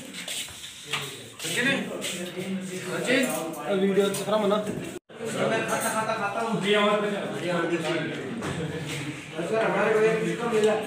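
A young man talks close by with animation.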